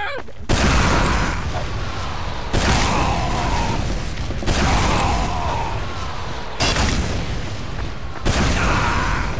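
A shotgun fires loud blasts every two seconds or so.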